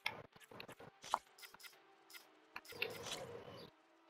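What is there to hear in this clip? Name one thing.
Soft interface clicks sound as a menu prompt pops up.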